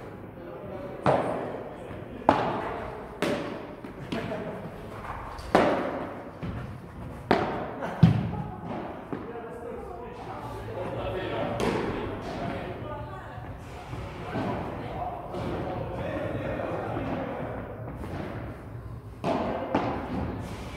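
A ball bounces on the court and thuds against the glass walls.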